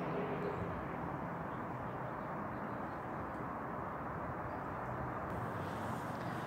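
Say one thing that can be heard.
Wind blows steadily outdoors and rustles through tree leaves.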